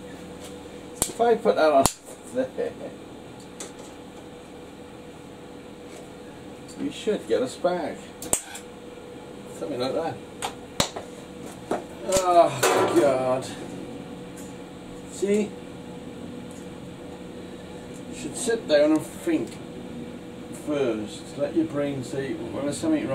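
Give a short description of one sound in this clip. An older man talks calmly and explains, close by.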